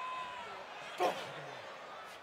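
A wrestler's strike lands with a loud slap.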